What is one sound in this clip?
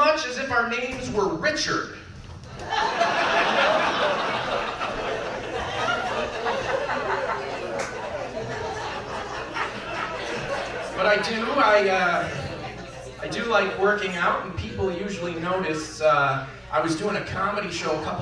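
A man talks animatedly into a microphone, heard through loudspeakers in a room.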